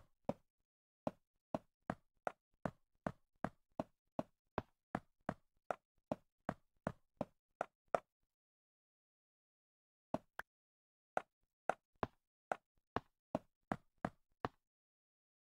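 Footsteps tap quickly and evenly on leaves in a block game.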